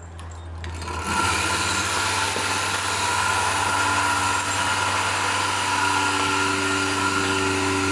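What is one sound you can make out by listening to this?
A milking machine hums loudly with a steady, rhythmic pulsing hiss.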